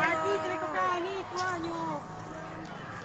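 A woman talks excitedly close by.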